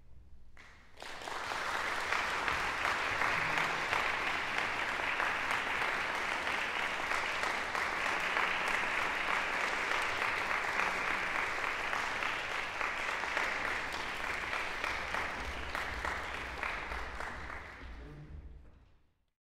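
An audience applauds loudly in a large echoing hall, then the clapping fades.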